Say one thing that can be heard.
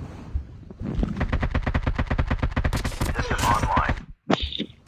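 Rapid gunshots fire in a long burst.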